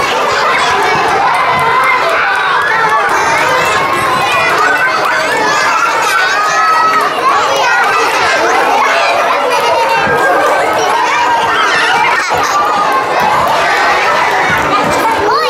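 Many young children chatter, shout and laugh close by in an echoing room.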